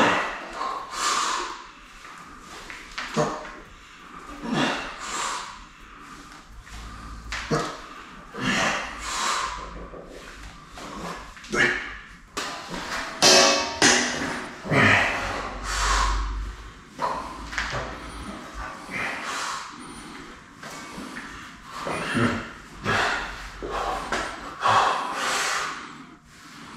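A man exhales sharply and forcefully with each lift.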